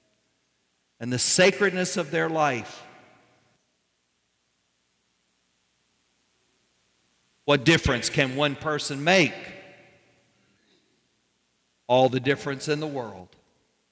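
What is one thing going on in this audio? A man speaks calmly through a microphone in a large echoing hall, with long pauses.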